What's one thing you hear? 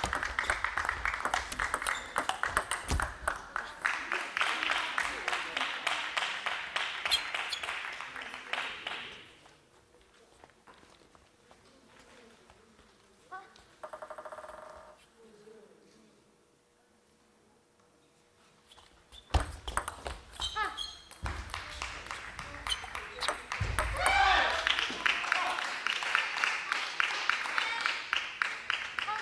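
A table tennis ball clicks rapidly back and forth off paddles and a table.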